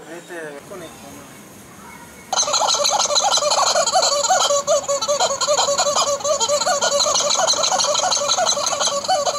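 Several young men laugh softly nearby.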